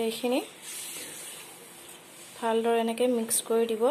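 A spatula scrapes and stirs in a pan.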